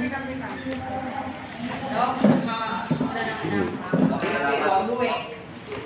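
Several adults talk nearby in the background.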